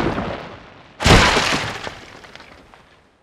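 Wooden beams crash down and clatter in a heap.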